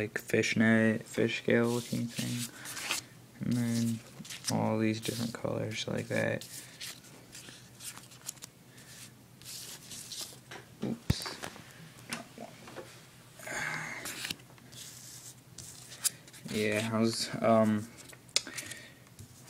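Stiff paper cards slide and rustle as a hand shuffles through them.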